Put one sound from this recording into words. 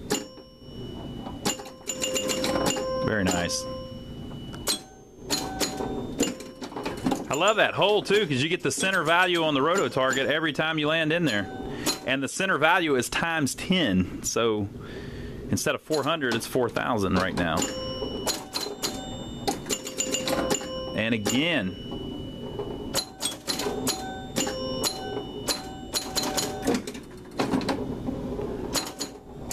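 A pinball machine's ball clacks against bumpers and flippers.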